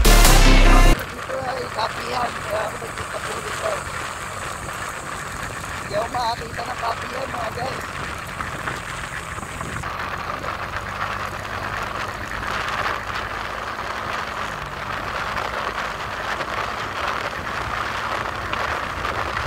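A motorbike engine hums steadily while riding.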